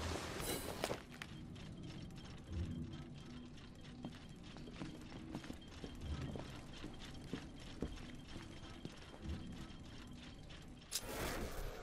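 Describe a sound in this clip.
Footsteps tread slowly on a wooden floor.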